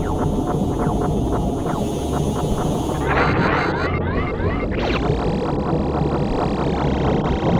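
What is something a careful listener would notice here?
Laser shots fire rapidly, one after another.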